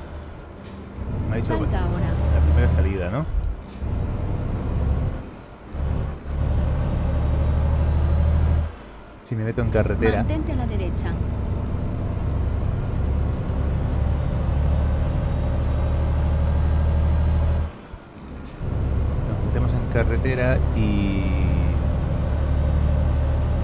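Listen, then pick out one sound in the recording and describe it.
A truck engine rumbles low and steady, dropping away briefly now and then.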